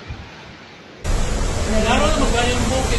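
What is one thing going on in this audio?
Strong wind roars through trees and plants.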